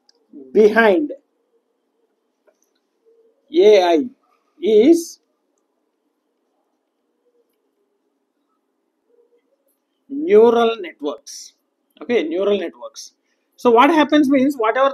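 A man speaks calmly in short phrases with pauses, close by.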